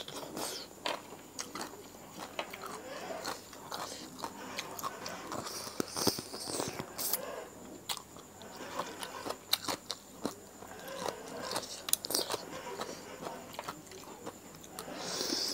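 A woman chews and smacks her lips loudly close up.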